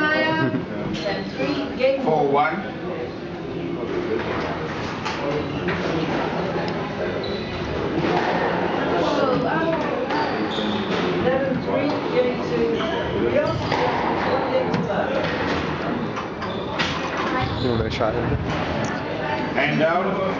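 A squash ball smacks sharply off the walls and racquets in an echoing court.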